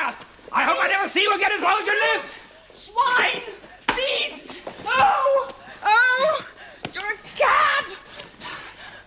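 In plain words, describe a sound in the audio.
A man grunts and shouts while scuffling.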